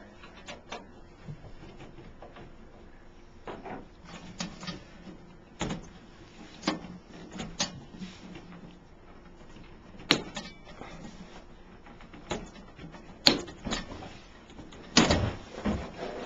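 Hands knock and tap against a metal machine casing.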